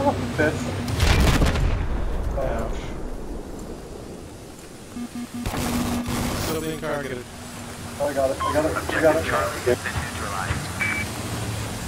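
A repair tool hisses and crackles.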